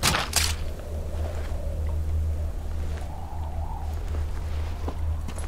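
Clothing and gear rustle as a soldier crawls over stone.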